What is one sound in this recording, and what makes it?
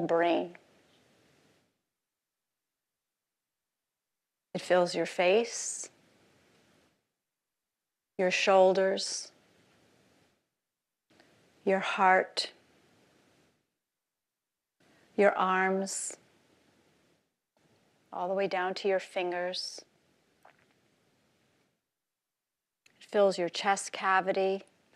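A woman speaks with animation through a microphone, in short phrases with long pauses.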